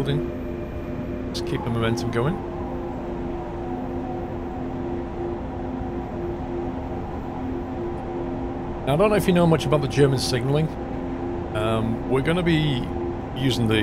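A train's electric motor hums steadily.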